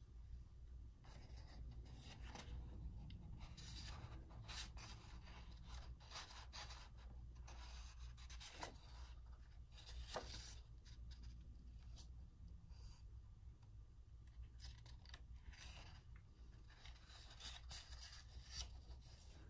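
Stiff paper pages of a book rustle and flap as they are turned.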